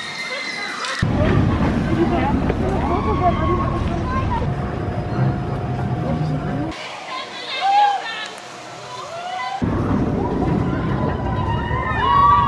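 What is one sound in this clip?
A roller coaster train roars and rattles along its track.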